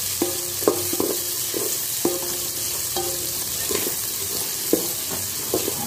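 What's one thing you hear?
A wooden spoon scrapes and knocks against a metal pot, making it ring.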